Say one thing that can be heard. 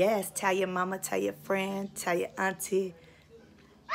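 A woman speaks cheerfully up close.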